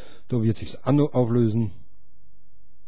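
A man speaks with animation, close into a microphone.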